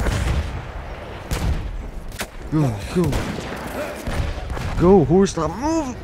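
Gunshots crack sharply, one after another.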